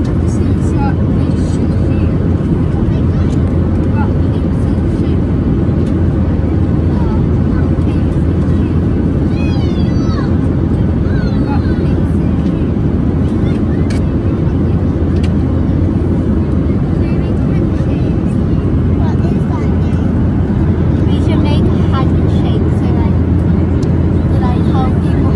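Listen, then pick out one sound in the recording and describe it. A young girl talks and laughs softly close by.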